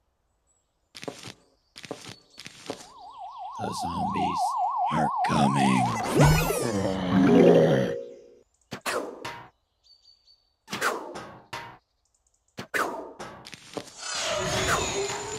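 A video game plays short pops and chimes as plants are placed.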